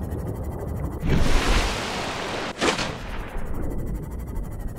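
Water rushes and splashes loudly as the craft breaks the surface and dives back under.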